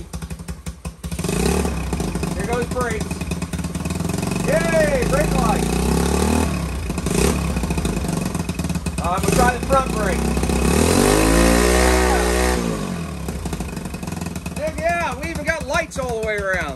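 A small motorcycle engine starts with a kick and idles with a loud, rough putter.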